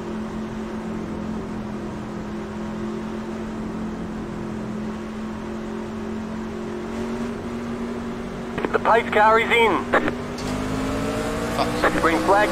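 A race car engine idles with a steady low drone, then slowly revs higher.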